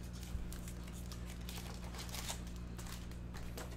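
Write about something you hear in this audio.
Foil card packs rustle and crinkle in hands.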